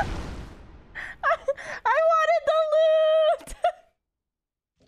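A young woman laughs loudly and shrilly close to a microphone.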